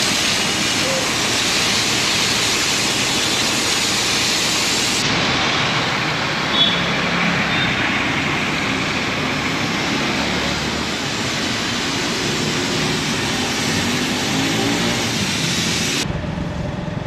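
Water sprays hard from a hose, hissing onto the pavement.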